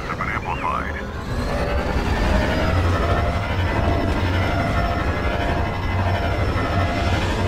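Spaceship engines roar and hum steadily.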